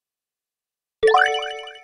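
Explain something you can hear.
A sparkling chime rings as a task completes.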